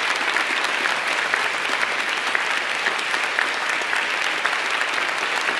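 A large crowd claps steadily in a big echoing hall.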